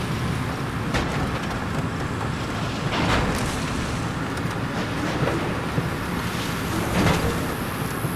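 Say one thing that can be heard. A vehicle's body knocks and rattles over rough ground.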